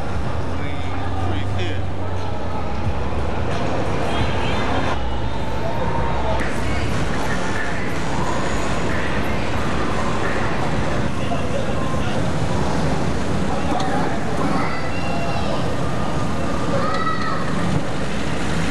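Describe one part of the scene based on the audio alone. Car engines idle and rumble nearby.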